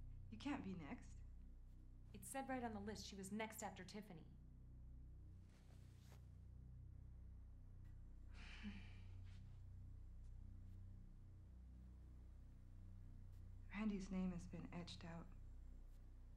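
A young woman speaks close by in a strained, upset voice.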